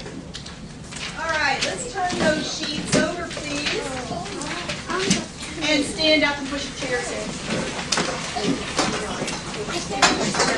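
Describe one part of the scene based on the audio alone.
A woman speaks animatedly to a room of children.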